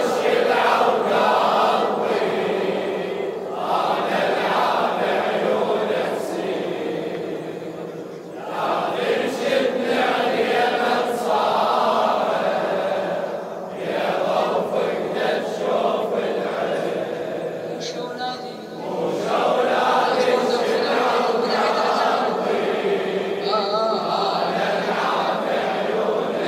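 A large crowd of men chants together loudly in an echoing hall.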